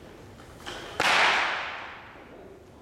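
A loaded barbell clanks loudly.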